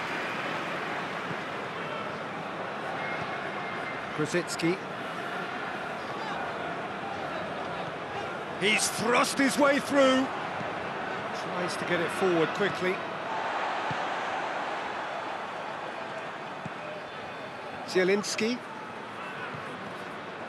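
A large crowd murmurs and cheers steadily in a big stadium.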